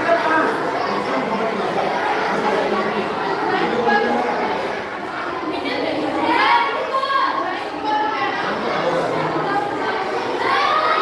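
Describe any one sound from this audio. A young girl speaks clearly nearby, in a slightly echoing room.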